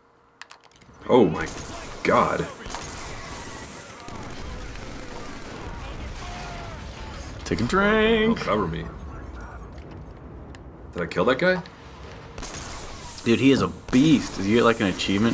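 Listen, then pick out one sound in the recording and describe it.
A heavy gun fires in loud bursts.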